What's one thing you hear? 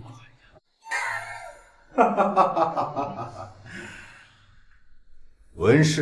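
A man speaks with animation up close.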